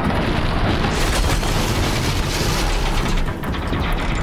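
A large explosion booms and roars.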